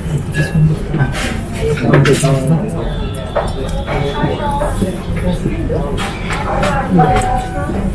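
A young man slurps soup from a spoon.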